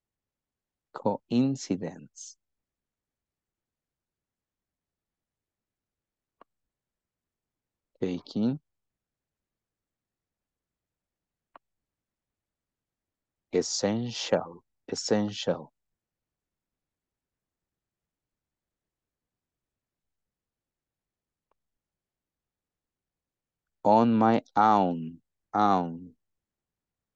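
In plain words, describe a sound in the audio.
A man reads out slowly through an online call, in short phrases with pauses.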